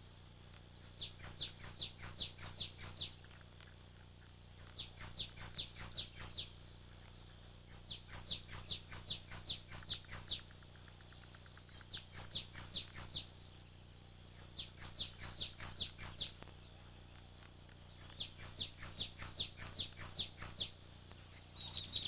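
House finches chirp in quick descending bursts.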